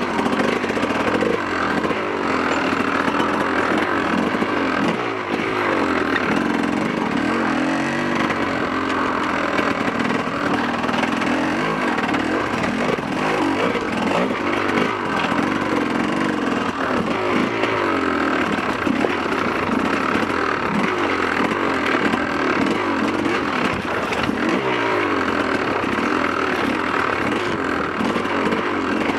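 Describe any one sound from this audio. A dirt bike engine revs up and down close by, rising and falling in pitch.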